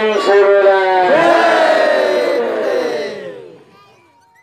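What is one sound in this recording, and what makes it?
A man sings long held notes through a loudspeaker, then trails off.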